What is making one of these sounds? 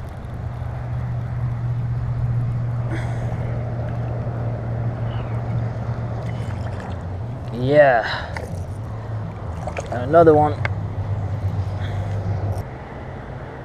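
A fishing reel whirs steadily as line is wound in.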